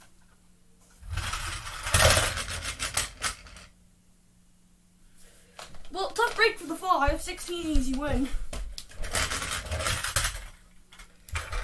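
A toy car rolls across a wooden floor.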